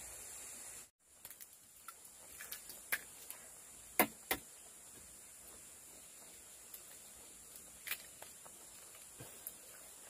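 A pot of soup simmers and pops softly.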